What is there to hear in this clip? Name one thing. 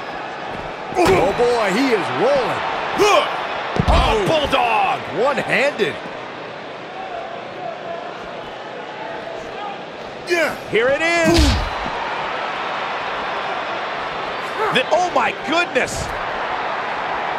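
Heavy blows thud and slam against bodies.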